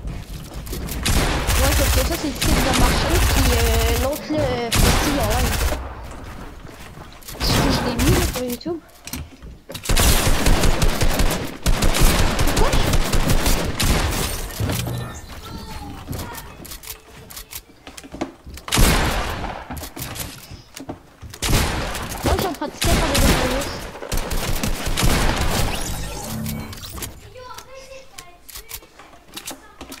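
Wooden building pieces clack into place in rapid bursts.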